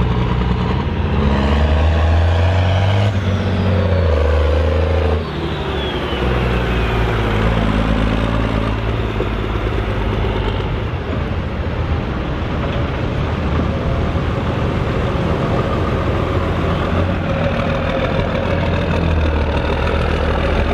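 A large tractor's diesel engine roars loudly and revs up and down.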